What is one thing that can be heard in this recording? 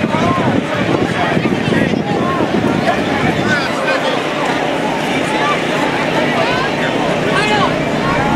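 A crowd of people chatters and calls out in the background.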